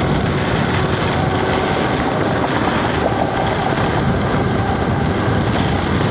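Wind rushes loudly past the microphone while riding fast outdoors.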